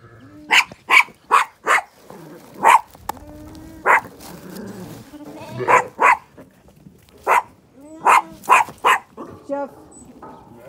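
Lambs bleat.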